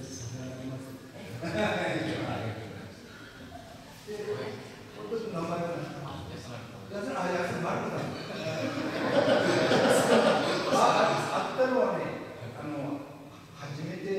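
Several men talk together in a room with a light echo.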